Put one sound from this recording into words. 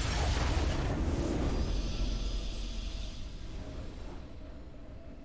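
A game's victory fanfare rings out and fades.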